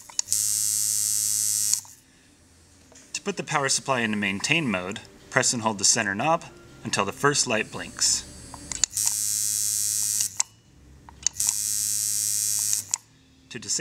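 A tattoo machine buzzes steadily in short bursts.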